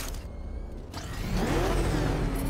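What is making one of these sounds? A vehicle engine roars loudly as it accelerates.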